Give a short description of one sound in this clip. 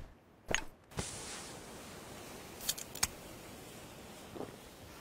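A smoke grenade hisses steadily.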